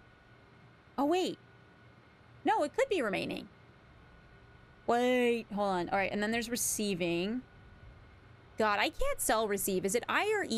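A young woman speaks with animation into a close microphone, in short bursts.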